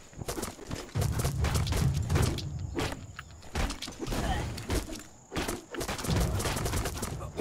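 Heavy impacts thud as a game character strikes.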